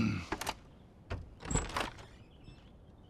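A door handle rattles.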